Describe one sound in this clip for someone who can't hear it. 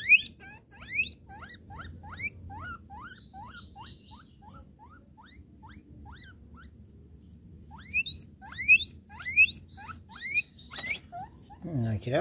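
Guinea pigs squeal with repeated high rising whistles.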